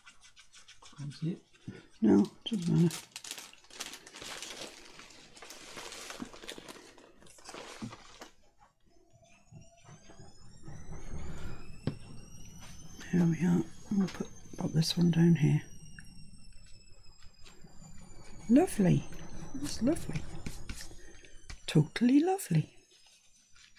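A middle-aged woman talks calmly into a close microphone.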